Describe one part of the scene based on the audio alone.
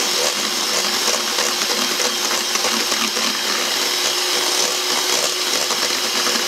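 An electric hand mixer whirs steadily, beating batter in a metal bowl.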